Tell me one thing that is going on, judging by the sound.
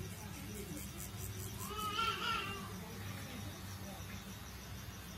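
A tattoo machine buzzes steadily close by.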